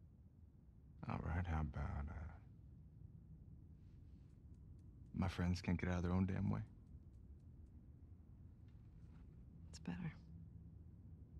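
A man speaks briefly and calmly close to a microphone.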